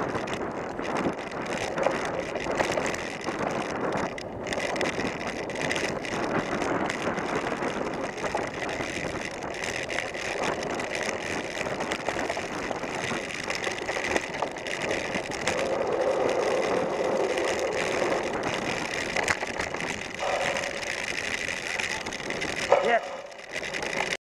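Bicycle tyres rumble over bumpy grass and dirt.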